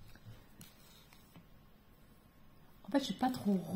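Embroidery thread softly rustles as it is pulled through fabric.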